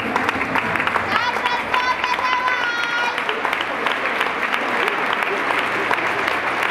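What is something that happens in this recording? A large crowd cheers and claps in an echoing hall.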